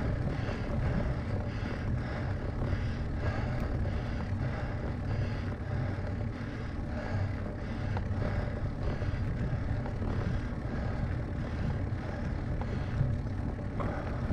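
Bicycle tyres roll slowly uphill on asphalt.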